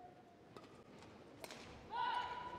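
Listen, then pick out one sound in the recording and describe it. A shuttlecock is struck sharply by a racket.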